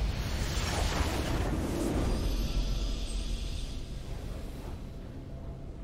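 A triumphant video game fanfare plays.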